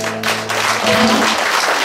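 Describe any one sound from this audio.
A guitar chord rings out and fades.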